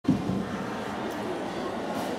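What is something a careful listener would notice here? A horse canters on soft sand in a large echoing hall.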